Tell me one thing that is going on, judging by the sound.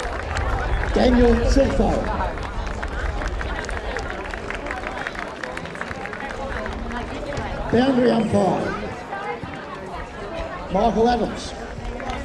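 A man calls out loudly to a crowd outdoors.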